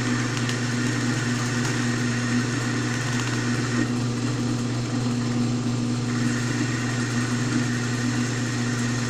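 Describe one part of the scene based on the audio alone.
A cutting tool scrapes against turning metal.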